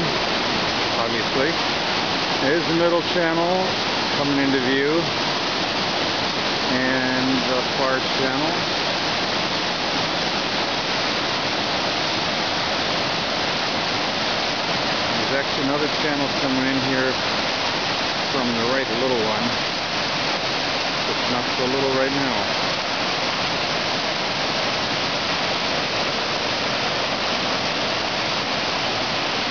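Rapids rush and roar loudly and steadily outdoors.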